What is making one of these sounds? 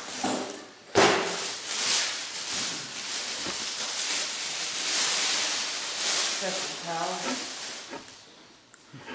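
Water splashes and sloshes in a tub.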